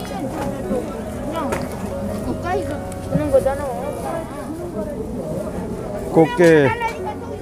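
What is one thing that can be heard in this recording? Many people chatter and call out nearby.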